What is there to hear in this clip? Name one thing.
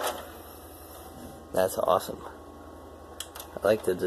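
A console's disc tray slides open with a soft whir.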